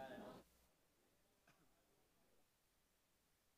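Adult men and women chat quietly at a distance in a large room.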